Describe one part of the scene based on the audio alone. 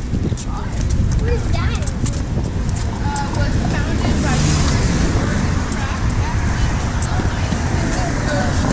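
Footsteps tap on a pavement outdoors.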